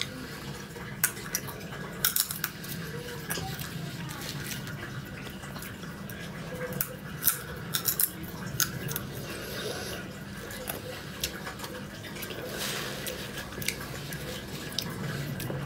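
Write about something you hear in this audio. Sunflower seed shells crack softly between a young woman's teeth.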